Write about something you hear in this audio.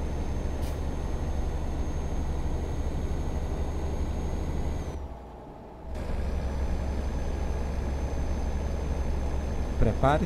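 A truck engine rumbles steadily inside the cab.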